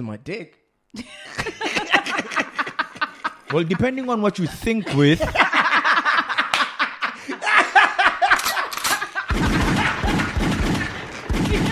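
A young man laughs loudly.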